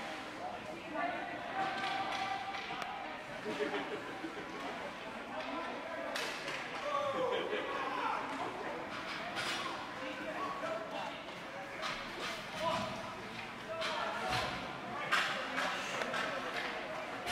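A crowd of spectators chatters and shouts in a large echoing rink.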